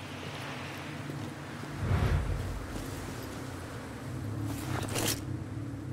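Footsteps crunch on grass and rocky ground.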